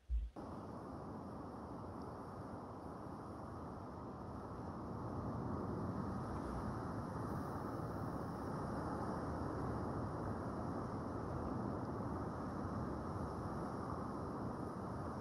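Water rumbles and swirls in a low, muffled, steady rush underwater.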